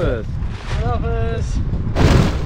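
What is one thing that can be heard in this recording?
A man speaks with animation close by.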